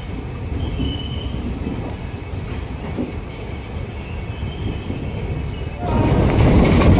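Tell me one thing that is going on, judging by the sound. A train idles with a low hum.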